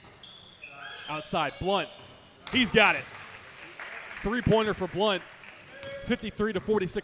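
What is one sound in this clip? Players and spectators shout loudly in an echoing gym.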